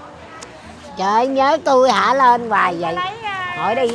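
An elderly woman speaks loudly and emotionally into a clip-on microphone, close by.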